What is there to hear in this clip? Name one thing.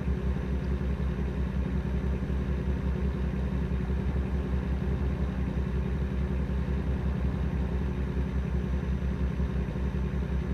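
A truck engine rumbles steadily at a low pitch.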